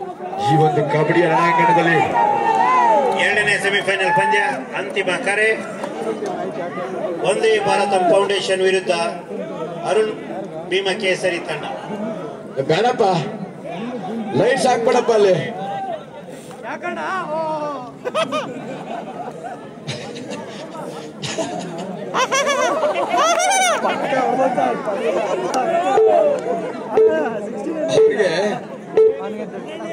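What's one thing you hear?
A crowd of men cheers and shouts loudly nearby.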